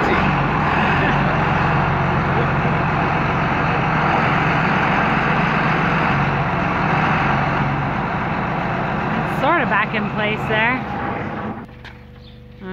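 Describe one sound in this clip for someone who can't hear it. A tractor engine idles loudly close by.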